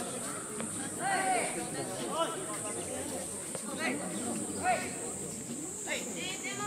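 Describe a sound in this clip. Young men shout short calls across an outdoor court.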